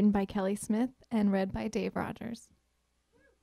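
A woman speaks into a microphone with animation.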